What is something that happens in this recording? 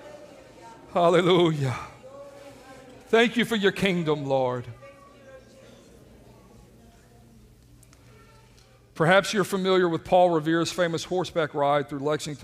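A middle-aged man speaks with feeling through a microphone in a large echoing room.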